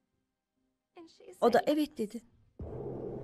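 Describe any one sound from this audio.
A woman speaks in a tearful, shaky voice close to a microphone.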